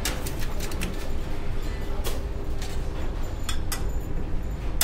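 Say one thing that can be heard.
Dishes and cutlery clatter on a tray.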